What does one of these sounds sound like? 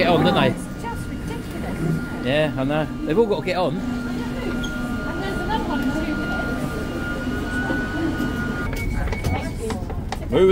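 A train hums steadily while standing at the platform.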